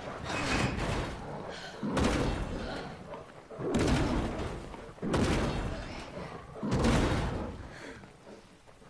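Heavy blows crash repeatedly against a wooden door.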